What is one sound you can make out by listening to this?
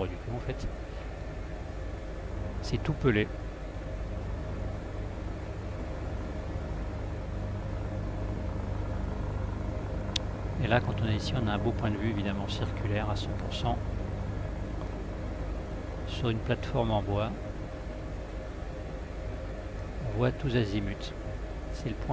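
A helicopter's engine and rotor drone steadily and low.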